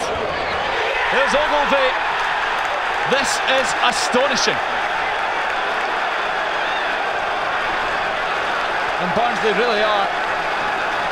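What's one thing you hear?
Young men cheer and shout excitedly outdoors.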